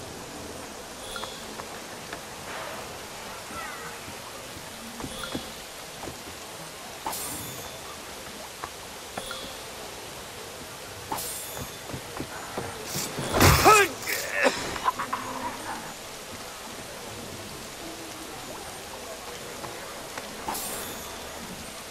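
Coins jingle briefly several times.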